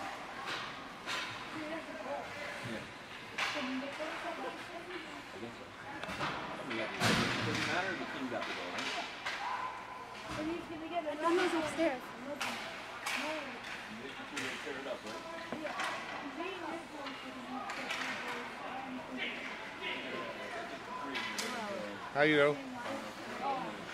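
Spectators talk and call out in a large echoing rink.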